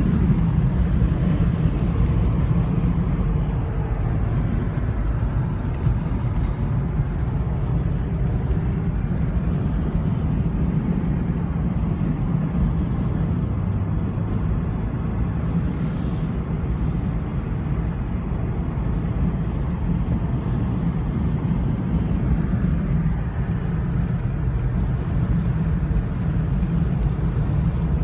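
A car engine hums steadily as tyres roll on the road from inside the car.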